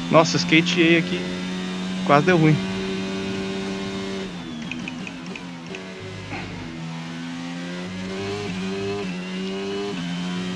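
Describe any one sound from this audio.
A racing car engine roars, its pitch rising and falling as it shifts gears.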